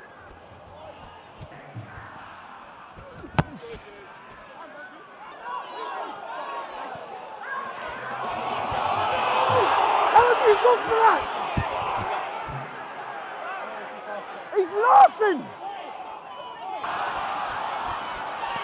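A stadium crowd murmurs and cheers outdoors, swelling to a roar.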